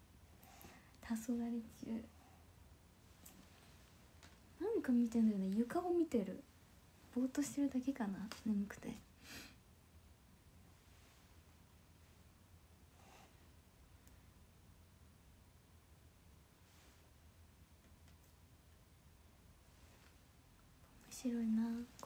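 A young woman talks softly and close by.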